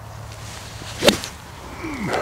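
A golf club strikes sand and a ball with a sharp thud.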